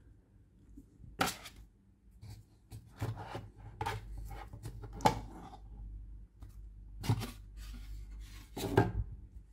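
Hands lift booklets out of a cardboard box with rustles and scrapes.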